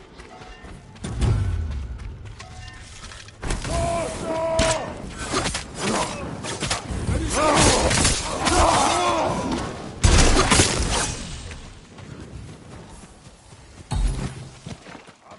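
Explosions boom with heavy thuds.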